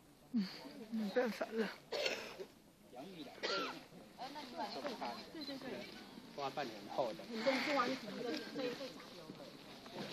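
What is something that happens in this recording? A crowd of men and women chat nearby outdoors.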